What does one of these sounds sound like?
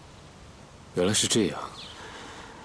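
A young man speaks briefly and calmly up close.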